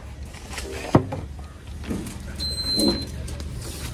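A wooden plank knocks against the ground.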